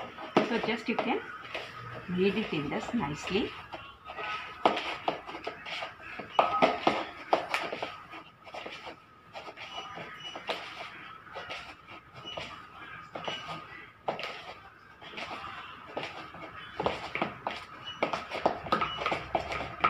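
Hands knead soft dough in a plastic bowl.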